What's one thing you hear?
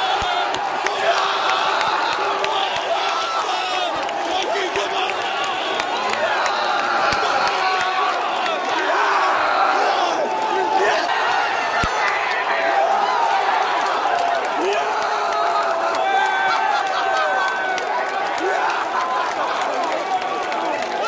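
A large crowd of men sings and chants loudly close by.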